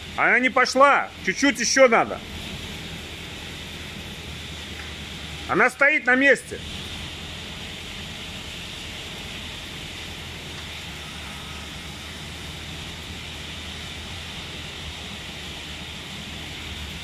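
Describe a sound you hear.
A forklift engine idles with a steady low hum nearby.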